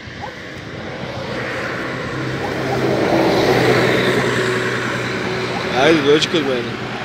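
A bus drives past on a nearby road, growing louder and then fading.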